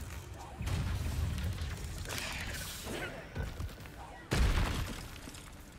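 Spell blasts burst with loud whooshing impacts.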